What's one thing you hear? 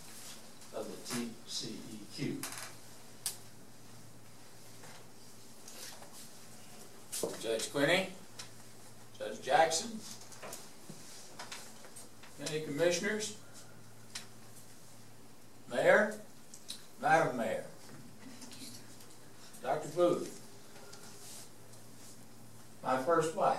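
An elderly man speaks in short bursts with pauses, in a room with some echo.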